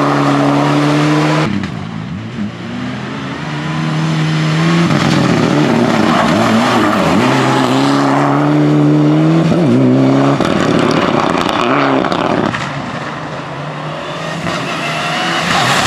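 Tyres hiss and spray over a wet road.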